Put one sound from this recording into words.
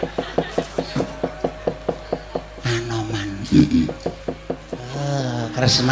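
Wooden knocks tap in a fast, steady rhythm.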